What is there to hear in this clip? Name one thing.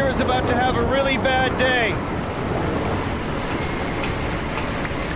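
Strong wind roars steadily across open, stormy water.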